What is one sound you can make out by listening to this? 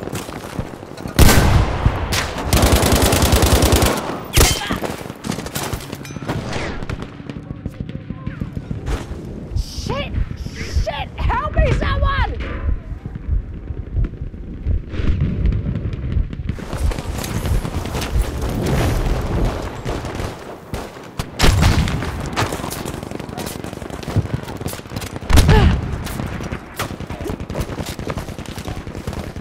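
Gunshots crack and bang repeatedly nearby.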